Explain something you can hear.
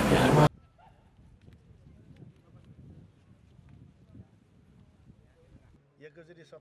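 A crowd of men murmurs and chatters quietly outdoors.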